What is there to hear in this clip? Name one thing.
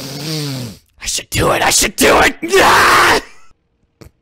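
A young man laughs loudly close to a microphone.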